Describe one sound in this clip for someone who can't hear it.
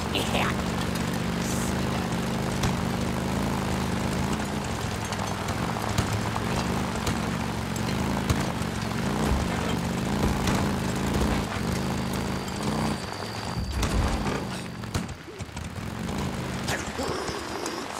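Tyres crunch over a gravel dirt track.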